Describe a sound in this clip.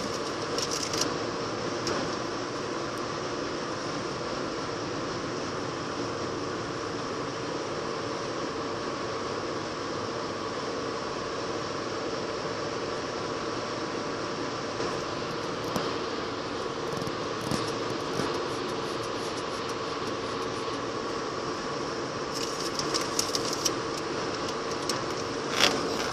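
A long freight train rumbles and rattles steadily past.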